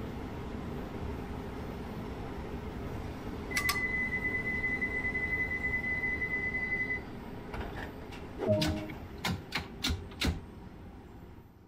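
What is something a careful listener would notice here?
A train's motors hum low and steady while it stands still.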